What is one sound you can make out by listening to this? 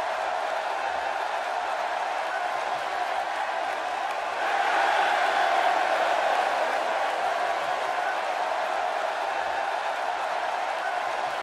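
A large crowd cheers steadily in a big arena, swelling louder for a few seconds.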